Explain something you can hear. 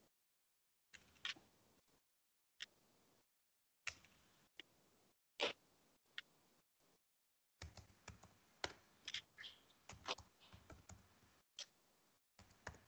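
Cards shuffle and tap softly on a table.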